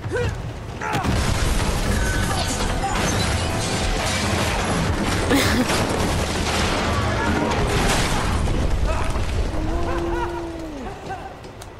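Loud explosions boom and debris crashes.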